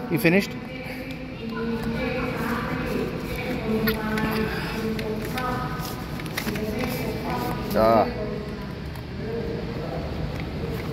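A woman speaks nearby in a calm, conversational voice.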